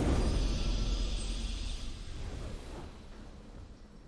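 A triumphant game fanfare rings out and slowly fades.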